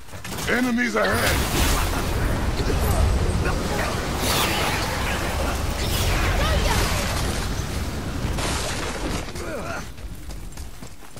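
A loud magical blast roars and rushes.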